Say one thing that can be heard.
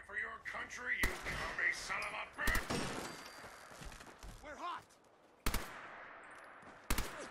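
A rifle fires single shots.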